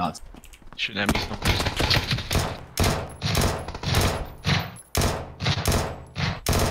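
A rifle fires shot after shot, loud and close.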